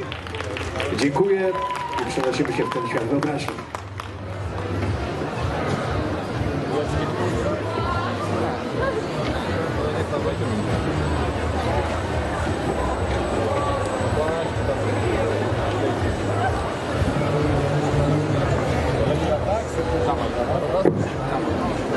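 A crowd murmurs and chatters throughout.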